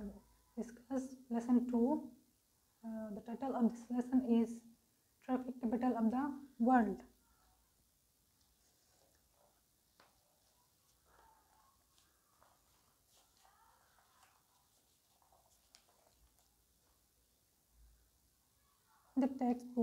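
A young woman speaks calmly and clearly into a clip-on microphone, as if teaching.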